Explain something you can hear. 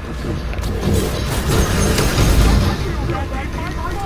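An explosion bursts with a loud roar and crackle.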